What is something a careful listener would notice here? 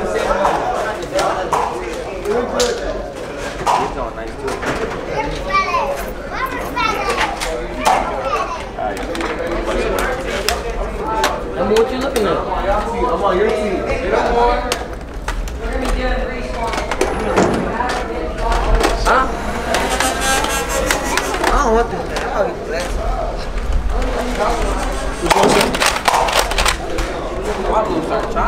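Young men talk and call out to each other.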